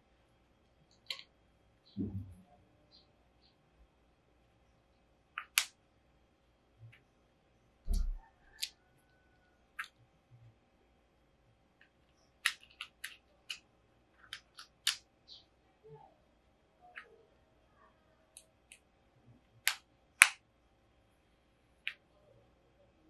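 Plastic buttons and a handheld console click and tap under fingers.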